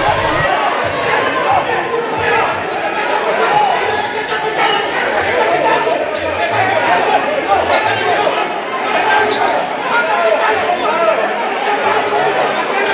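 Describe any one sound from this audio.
A crowd of men shout and argue heatedly in a large echoing hall.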